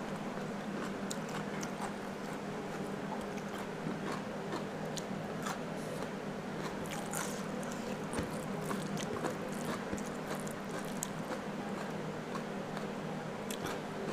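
Fingers squish and mix rice on a plate close to a microphone.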